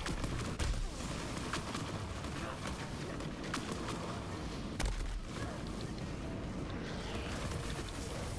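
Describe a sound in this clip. Flames roar.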